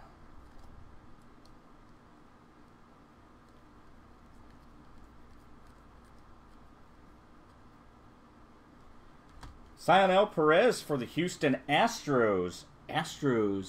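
Trading cards softly rustle and click as they are flipped through by hand.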